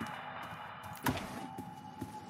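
A wooden drawer slides open.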